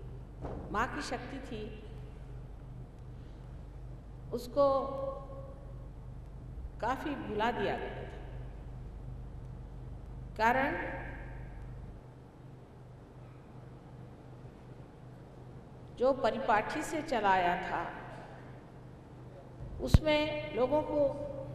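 An elderly woman speaks calmly into a microphone, in bursts with pauses.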